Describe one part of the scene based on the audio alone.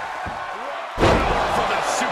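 A wrestler's body slams hard onto the ring mat with a loud thud.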